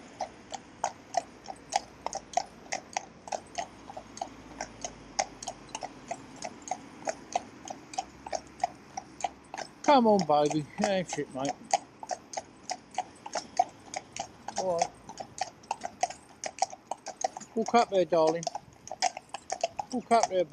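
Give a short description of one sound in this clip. Horse hooves clop steadily on a paved road.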